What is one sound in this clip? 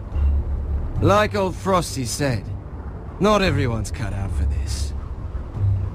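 A man speaks in a low, scornful voice.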